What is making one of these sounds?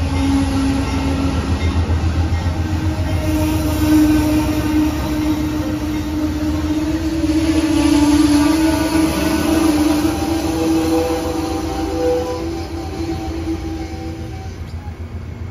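Train wheels squeal and whine on the rails.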